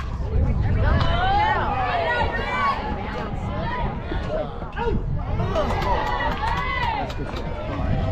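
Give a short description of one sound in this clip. Young women shout and cheer excitedly outdoors.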